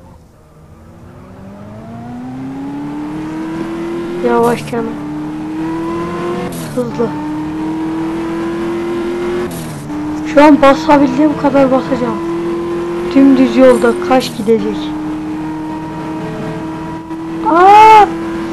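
A car engine drones steadily at high speed, shifting gears.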